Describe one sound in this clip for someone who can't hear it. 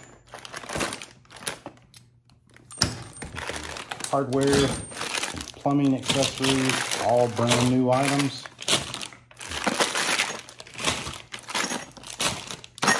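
Small objects rattle and clatter in a plastic basket as it is handled.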